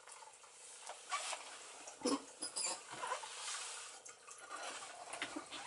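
A stringed instrument knocks and thumps as a man handles it.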